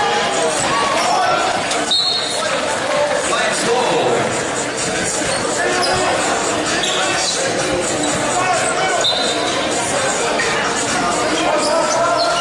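Young men call out to each other, shouting across the court.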